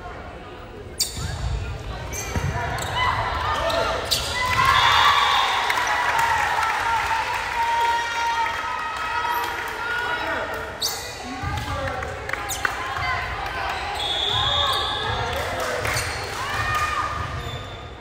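A ball is struck with sharp slaps in a large echoing gym.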